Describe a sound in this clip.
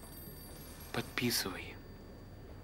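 An older man speaks briefly and calmly nearby.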